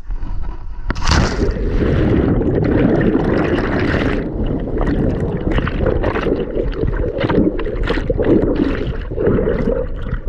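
Bubbles rush and churn loudly underwater.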